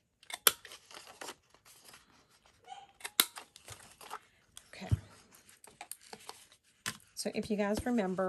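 Paper rustles and slides as it is handled.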